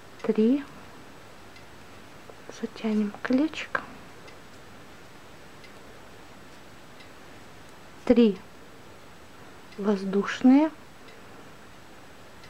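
A crochet hook softly scrapes and pulls through yarn.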